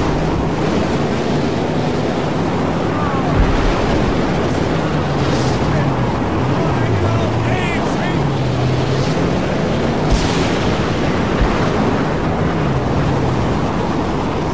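A car engine drones and its pitch rises and falls.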